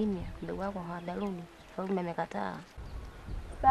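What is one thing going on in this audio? A woman speaks calmly close by.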